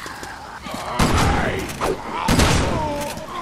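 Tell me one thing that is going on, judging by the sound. A handgun fires loud shots that echo.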